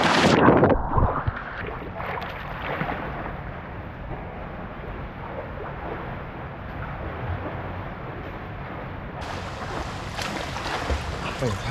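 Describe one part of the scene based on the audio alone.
A man swims, splashing the water.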